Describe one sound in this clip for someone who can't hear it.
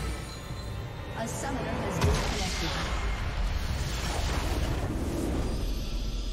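Game spell blasts and combat effects crash loudly.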